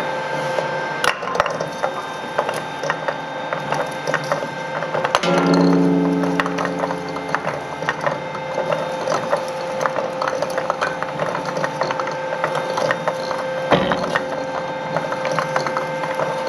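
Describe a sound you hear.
Metal oil filters clank and knock against the rollers.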